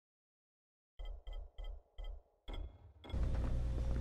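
Short electronic blips sound in quick succession.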